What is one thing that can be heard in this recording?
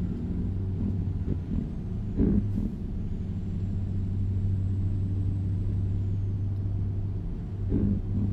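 A truck engine hums low and steady while driving.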